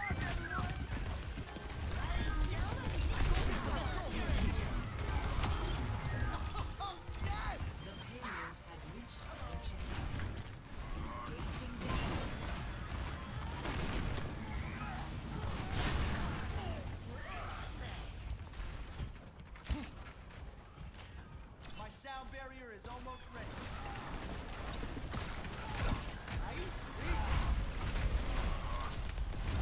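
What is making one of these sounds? Gunfire and energy blasts from a game crackle and boom.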